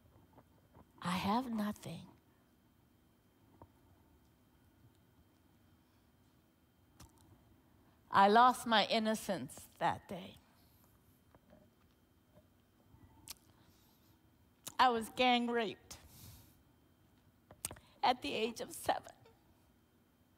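A woman speaks slowly and with feeling into a microphone, with long pauses.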